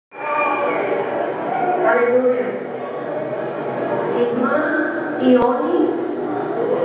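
A woman speaks into a microphone over loudspeakers in a hall.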